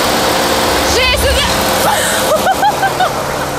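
A young woman laughs and talks excitedly close by.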